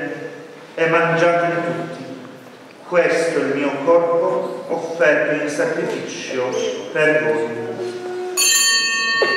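A man chants in a steady sung voice through a microphone, in an echoing hall.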